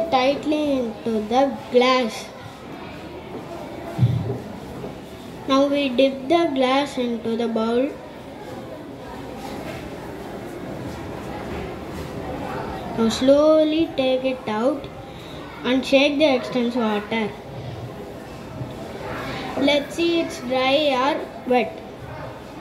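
A boy speaks into a microphone with animation, close by.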